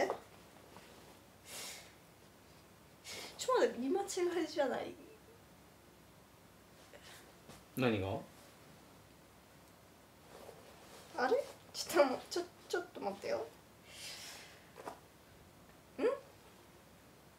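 A young woman speaks nearby in a puzzled, questioning way.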